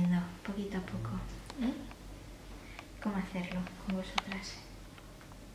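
A young woman speaks softly and closely.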